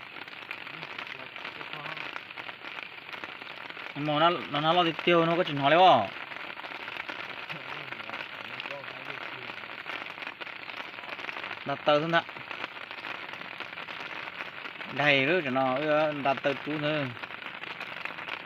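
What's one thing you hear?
Rain patters steadily on water.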